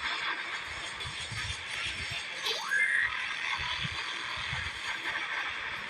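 A laser beam hums and crackles steadily.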